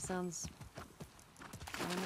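Water splashes under a horse's hooves.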